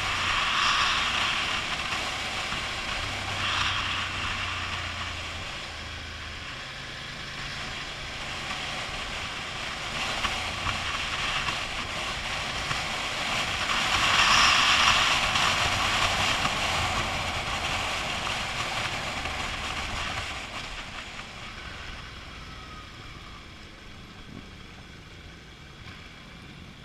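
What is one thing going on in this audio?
Wind rushes loudly past a helmet, rising and falling.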